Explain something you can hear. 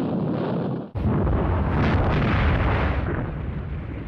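A heavy artillery gun fires with a deep, rumbling boom.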